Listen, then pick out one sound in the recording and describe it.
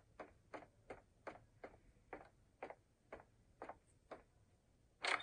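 Footsteps thud steadily on a carpeted floor.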